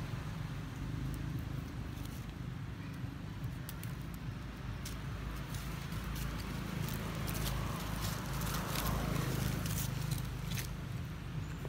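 Dry leaves rustle and crackle under a monkey's feet.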